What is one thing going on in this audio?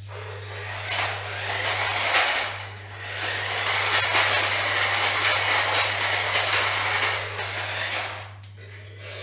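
A small toy motor whirs loudly.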